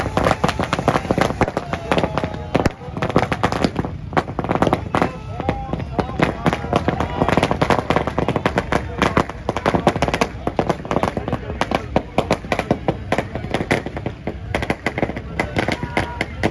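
A crowd of men shouts and chatters nearby.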